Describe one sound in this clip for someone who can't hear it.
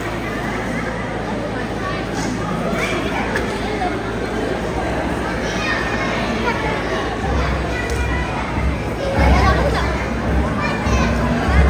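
Children sing together.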